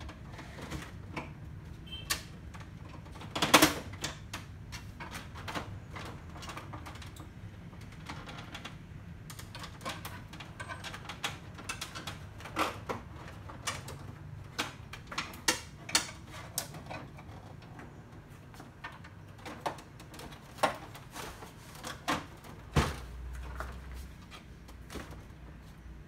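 A screwdriver clicks and taps against plastic casing.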